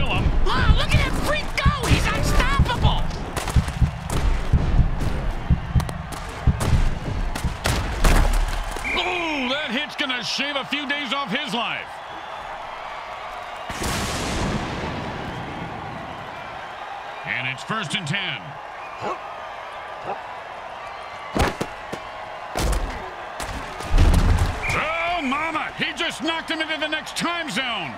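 Armoured players crash and thud together in heavy tackles.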